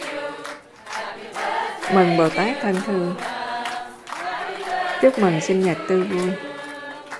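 A crowd of men and women sings together in a room.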